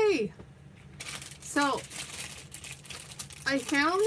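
A plastic package crinkles as hands handle it.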